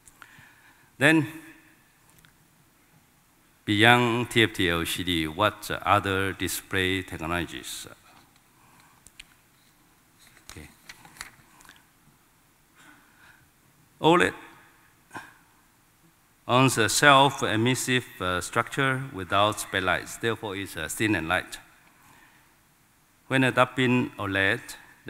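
A man speaks calmly through a microphone and loudspeakers in a large hall.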